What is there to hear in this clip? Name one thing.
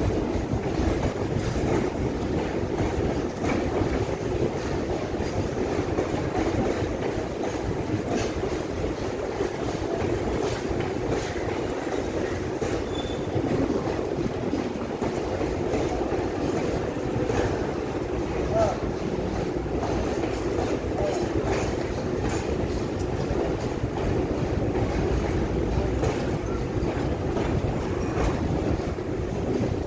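A long freight train rumbles past on the rails, its wheels clattering rhythmically over the track joints.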